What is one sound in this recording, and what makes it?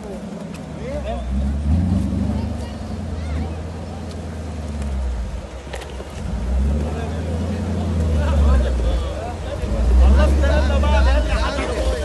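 Tyres crunch over loose rocks and dirt.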